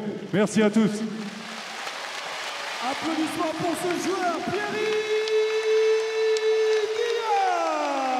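A large audience cheers and applauds.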